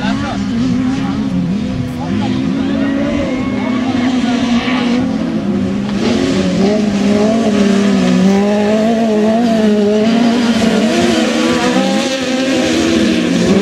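Racing car engines roar and rev loudly.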